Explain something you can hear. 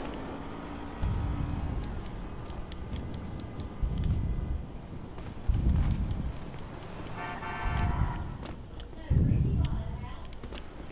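Footsteps thud on grass and pavement.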